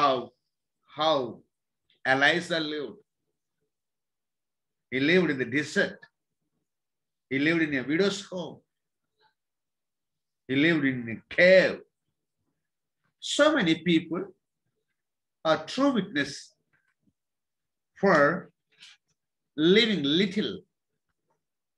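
A middle-aged man speaks slowly in short phrases close to a microphone, with pauses between them.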